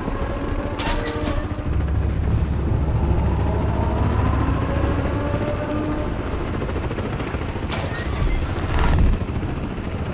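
A metal vent grate clanks open.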